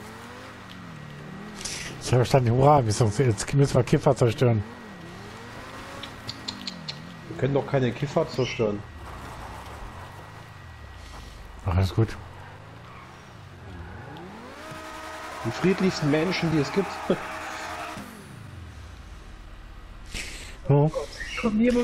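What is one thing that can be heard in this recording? A sports car engine hums and revs up and down.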